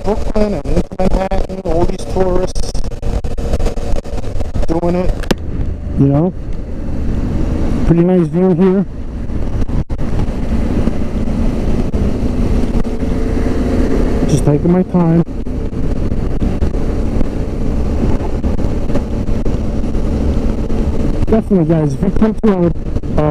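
A motorcycle engine hums and rises in pitch as it speeds up and shifts gears.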